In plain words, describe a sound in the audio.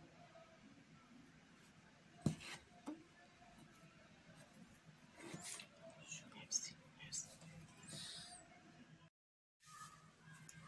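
Thread rustles softly as it is pulled through fabric.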